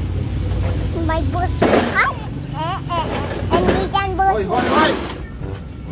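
A young girl speaks and squeals excitedly close by.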